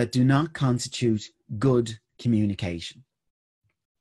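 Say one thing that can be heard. A man speaks calmly into a microphone over an online call.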